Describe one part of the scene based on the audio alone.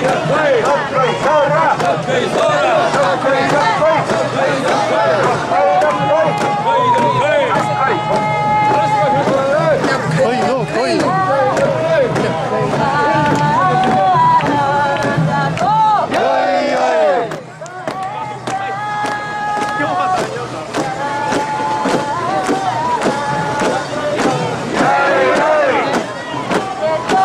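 A crowd of men and women chant loudly in rhythm close by.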